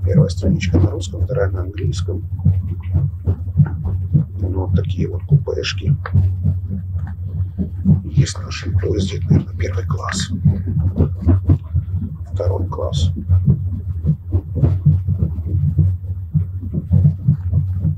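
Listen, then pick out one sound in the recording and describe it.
A train rumbles steadily underneath.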